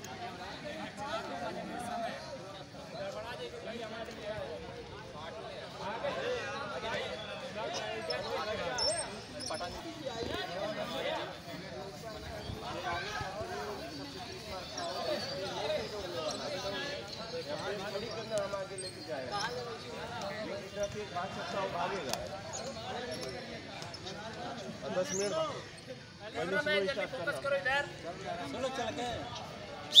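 Many young men chatter together outdoors.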